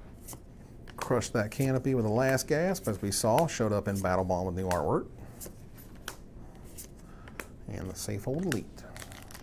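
Playing cards slide and tap against each other.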